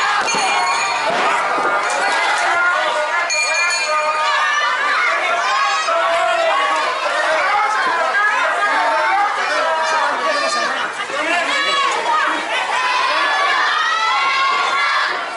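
A large outdoor crowd cheers and shouts loudly.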